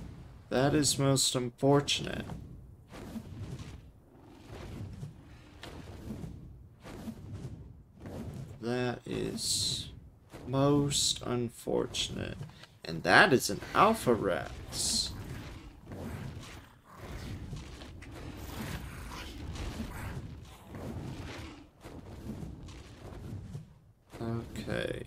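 Large wings flap and whoosh.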